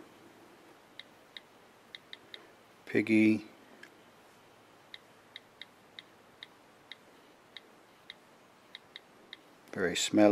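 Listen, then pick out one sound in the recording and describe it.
A tablet's keyboard gives short, high clicks as keys are tapped.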